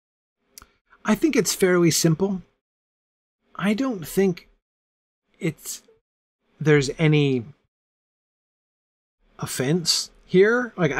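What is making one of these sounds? A middle-aged man reads aloud with expression, close to a microphone, pausing between phrases.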